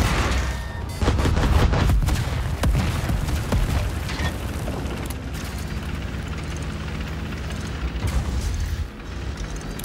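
Explosions blast and rumble nearby.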